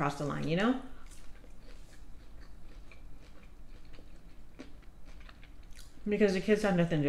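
A young woman chews food softly and close to a microphone.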